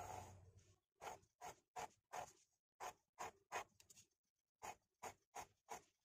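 A pen scratches across paper in short, quick strokes.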